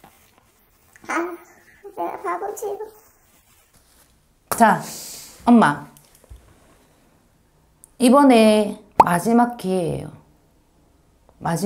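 A young woman speaks calmly and close by, with pauses.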